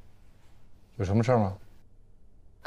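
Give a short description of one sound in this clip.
A young man asks a short question, close by.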